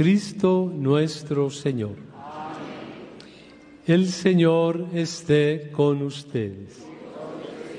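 A man chants into a microphone, echoing through a large hall.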